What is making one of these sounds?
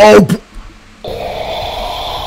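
Game music plays.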